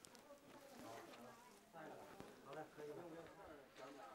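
Foam fizzes softly on water.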